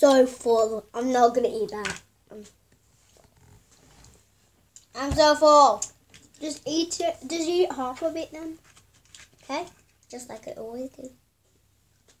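Young girls talk and giggle close by.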